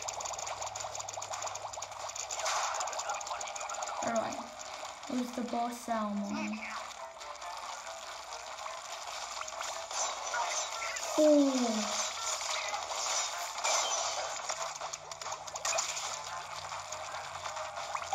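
Video game sound effects of splattering ink and shooting play through a small speaker.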